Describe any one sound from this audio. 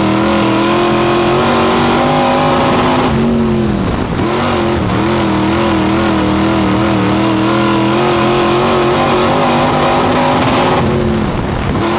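A race car engine roars loudly up close, its pitch dropping as it lifts off and rising again as it accelerates.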